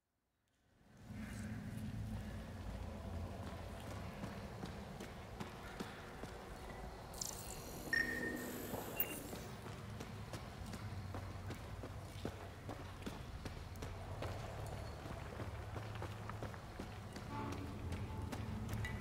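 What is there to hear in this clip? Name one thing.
Heavy footsteps crunch steadily over rocky ground.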